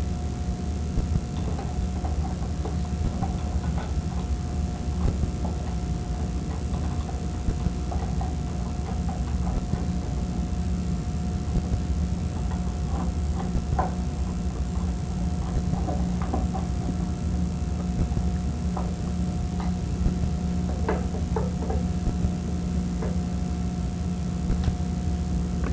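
A screwdriver clicks and scrapes against metal parts.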